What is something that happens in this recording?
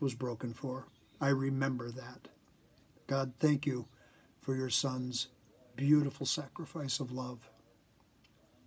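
An older man speaks calmly and close to the microphone.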